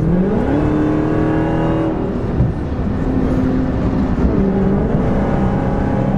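A car engine hums loudly and rises in pitch as it speeds up and changes gear.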